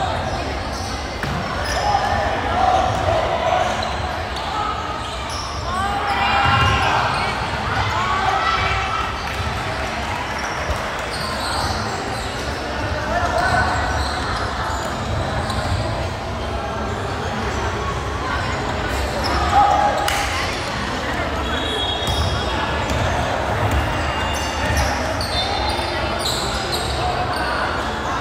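Players shout to each other across an echoing gym.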